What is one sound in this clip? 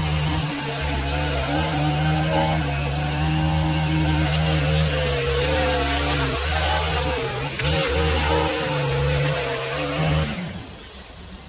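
A string trimmer motor whines loudly, its pitch wavering as it edges grass.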